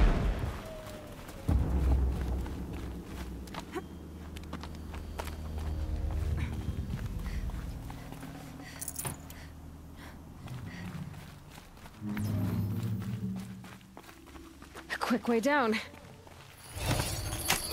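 Footsteps crunch on rock.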